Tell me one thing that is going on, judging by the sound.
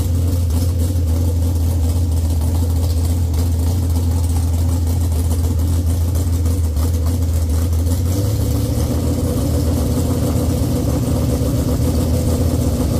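A large engine idles loudly with a deep, steady rumble close by.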